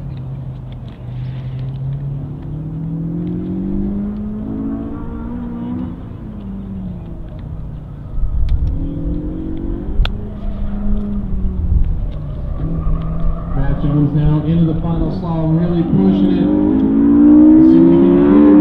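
A car engine revs hard in the distance, rising and falling as it speeds up and slows down.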